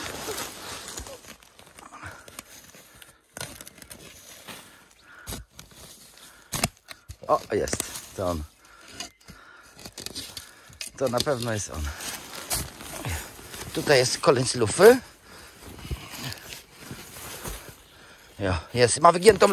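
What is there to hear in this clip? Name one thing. A shovel scrapes and crunches into dry soil.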